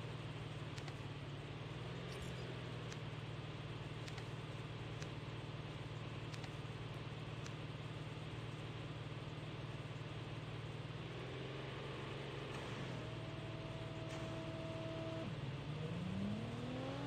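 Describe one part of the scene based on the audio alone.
A vehicle engine hums steadily as it drives over rough ground.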